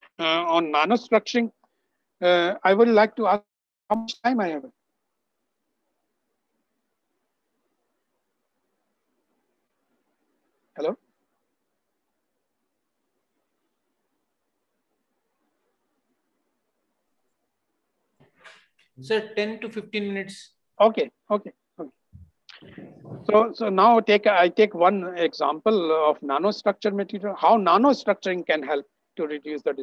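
An elderly man speaks calmly through an online call, pausing often.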